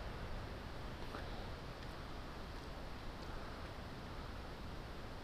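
Shallow water flows and ripples steadily outdoors.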